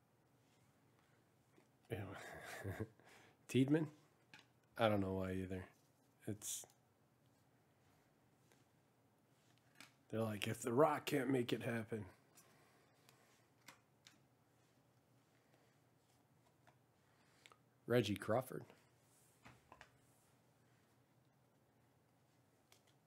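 Trading cards slide and flick against each other in a pair of hands.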